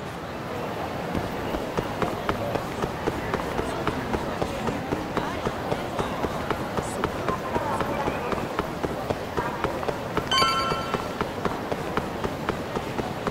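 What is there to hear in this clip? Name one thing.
Quick running footsteps slap on pavement.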